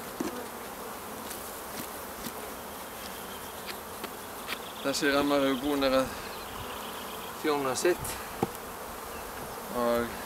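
Bees buzz softly around a hive.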